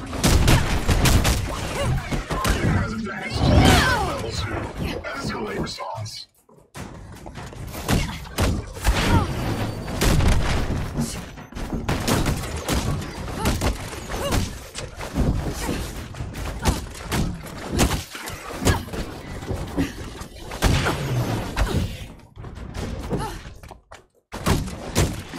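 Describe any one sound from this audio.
Punches and kicks land with heavy thuds and cracks again and again.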